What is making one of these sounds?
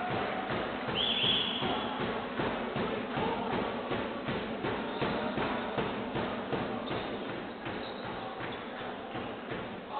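A basketball bounces rhythmically on a wooden floor.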